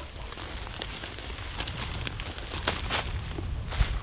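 Dry reeds rustle and crackle as a man pushes through them.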